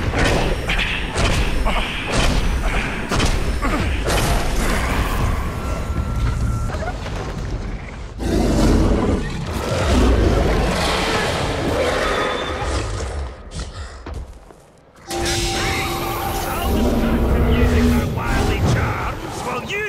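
A large beast growls and snarls.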